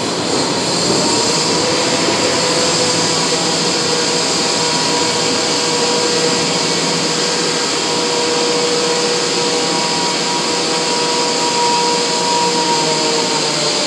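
A train's motor gives a steady whine as it pulls away.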